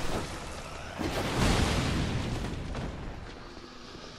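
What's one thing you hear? Fire bursts with a roaring whoosh.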